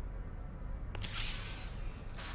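A cable plugs in with a short rustle and click.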